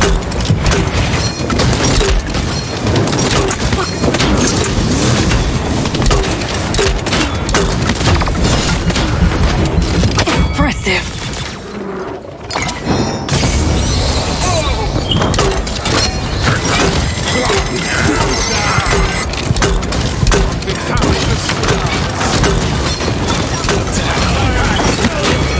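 Energy shots fire rapidly from a weapon.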